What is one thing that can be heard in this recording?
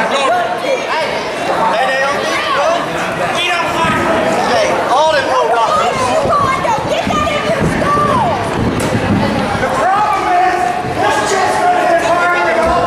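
A crowd shouts and jeers loudly in a large echoing hall.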